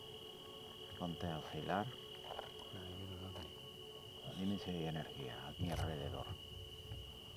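A man speaks quietly, close by.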